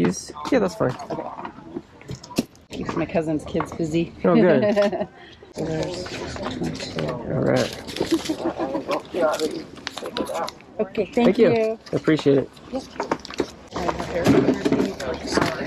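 A woman talks casually up close.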